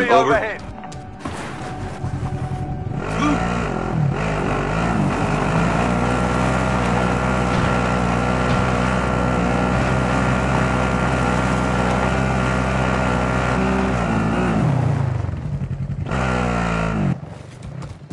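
A quad bike engine revs and drones steadily, then cuts off.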